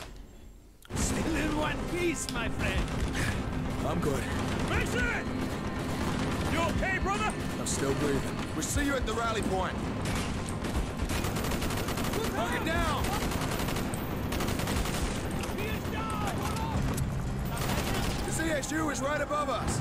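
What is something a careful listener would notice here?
Rapid gunfire crackles close by.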